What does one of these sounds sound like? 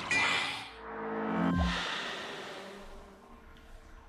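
A magical whoosh swells and fades away.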